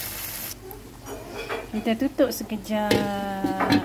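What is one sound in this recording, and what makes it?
A glass lid clinks against a metal pot.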